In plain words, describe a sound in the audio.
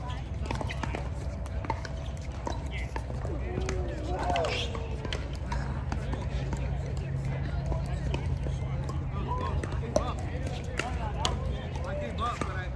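Shoes scuff and squeak on a hard court.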